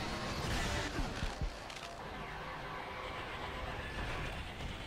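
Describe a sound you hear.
Explosions boom and rumble.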